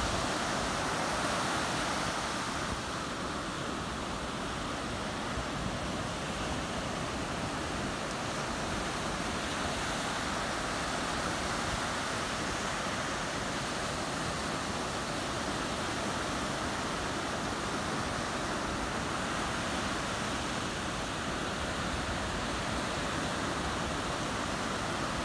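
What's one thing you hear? Ocean waves wash and break steadily onto a shore.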